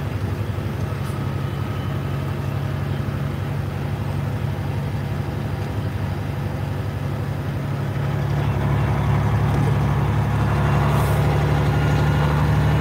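A heavy vehicle's engine rumbles steadily from inside the cab, growing louder toward the end.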